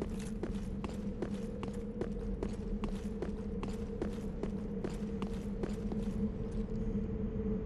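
Heavy armoured footsteps run quickly over stone.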